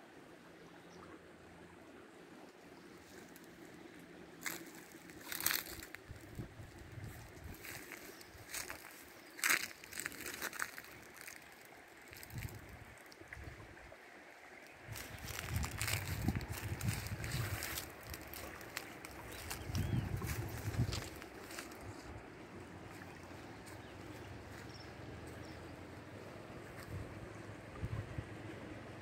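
A river rushes and swirls steadily.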